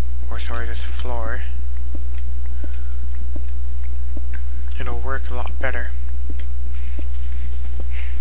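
A pickaxe chips repeatedly at stone.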